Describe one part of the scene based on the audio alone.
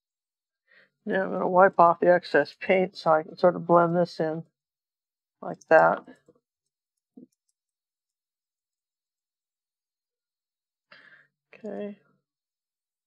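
An elderly woman talks calmly close to a microphone.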